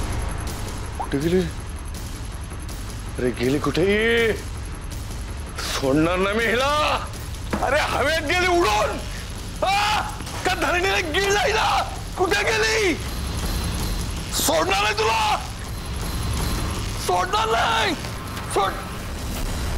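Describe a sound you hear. An elderly man shouts angrily and with great agitation, close by.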